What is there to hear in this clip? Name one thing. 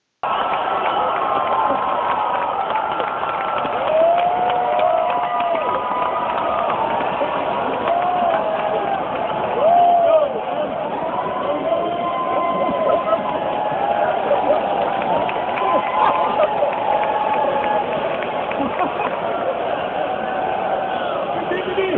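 A large crowd screams and cheers loudly in a big echoing hall.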